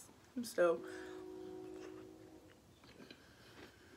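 A young woman eats with soft, wet mouth sounds.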